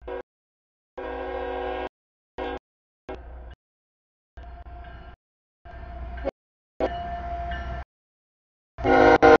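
A train horn blasts loudly, several times.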